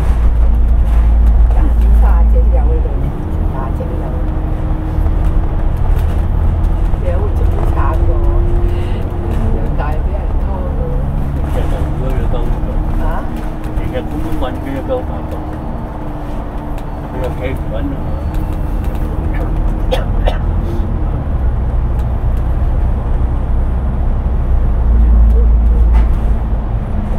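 Traffic passes by on a busy road.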